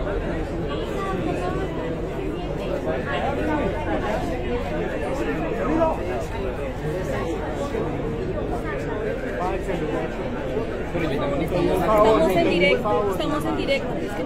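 A crowd of men and women talk over one another nearby.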